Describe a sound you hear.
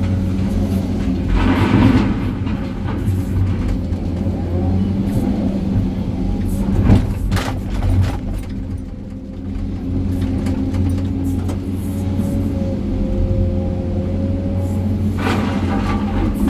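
Rocks and dirt pour with a rumble into a dump truck bed.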